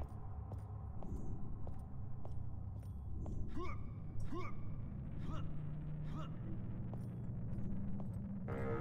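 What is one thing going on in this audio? Footsteps clank on metal at a steady walking pace.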